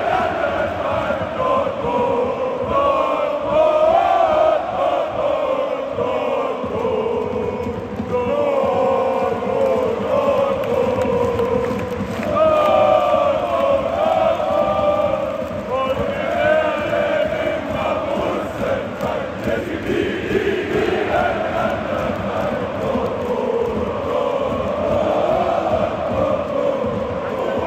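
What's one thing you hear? A huge stadium crowd sings a chant together, loud and echoing.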